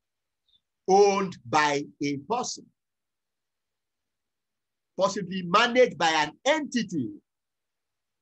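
A man speaks calmly over an online call, in short phrases with pauses.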